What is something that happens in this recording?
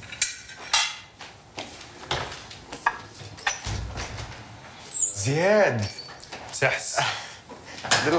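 Footsteps walk away across a room.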